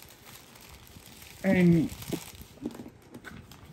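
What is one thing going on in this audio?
A plastic wrapper crinkles and rustles under a hand.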